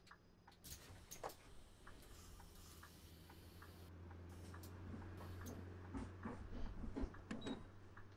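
Passengers' footsteps tap as they board the bus.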